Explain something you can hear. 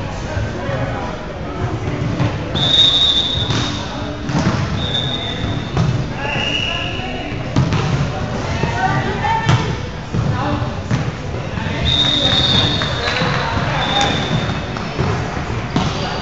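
A volleyball is struck with sharp slaps, echoing in a large hall.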